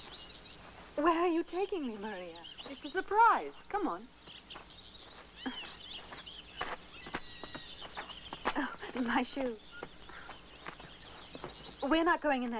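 A woman calls out loudly outdoors.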